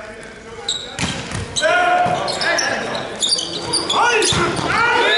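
Young men shout and call out to one another across the court.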